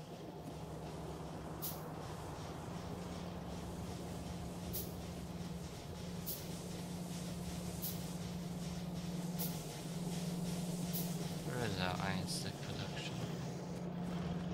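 Machines hum and whir steadily.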